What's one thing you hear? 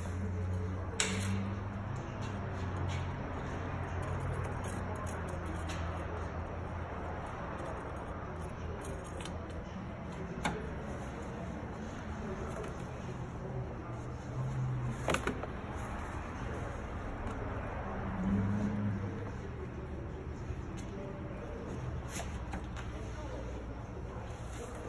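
Metal tools clink and knock against engine parts.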